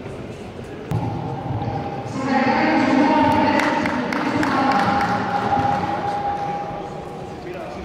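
A crowd cheers loudly in an echoing hall.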